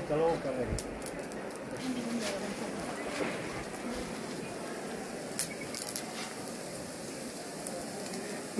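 Embers crackle and pop now and then.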